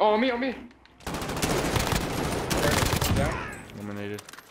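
A rifle fires rapid automatic bursts.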